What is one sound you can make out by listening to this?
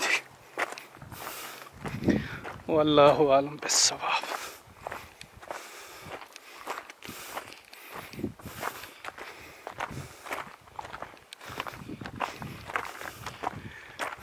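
Footsteps crunch on loose gravel and stones.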